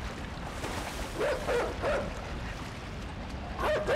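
Water splashes as someone paddles through it.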